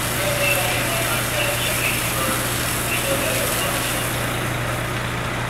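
A fire engine idles with a steady low hum.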